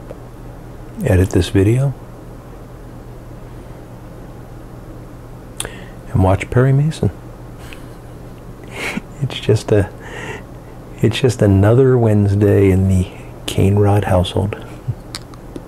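A middle-aged man talks calmly close by, in short bursts.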